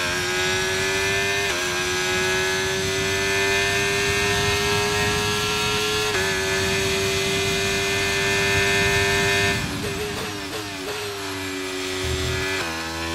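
A racing car engine whines loudly at high revs, shifting gears up and down.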